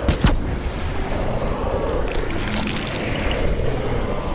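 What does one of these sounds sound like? A magical energy blast roars and crackles.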